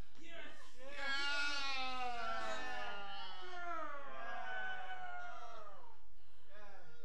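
A young woman wails and cries loudly in a large echoing hall.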